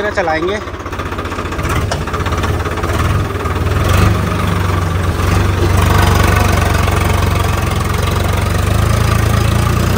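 A tractor engine revs up and rumbles louder as it drives.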